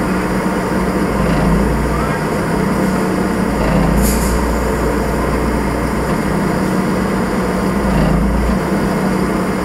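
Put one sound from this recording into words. A crane's hydraulics whine as a load is lifted.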